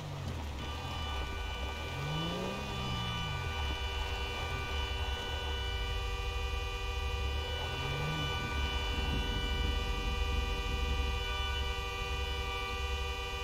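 Tyres crunch over loose gravel.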